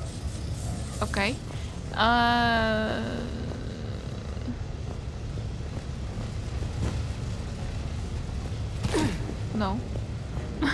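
A young woman speaks with animation close to a headset microphone.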